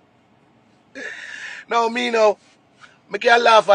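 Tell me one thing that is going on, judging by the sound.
A man laughs loudly close to a phone microphone.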